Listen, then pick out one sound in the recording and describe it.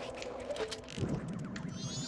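A sword swings through the air with a swift whoosh.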